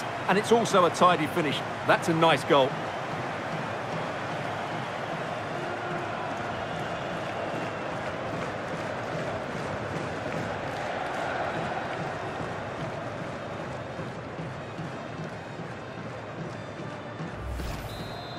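A stadium crowd roars steadily in a large open arena.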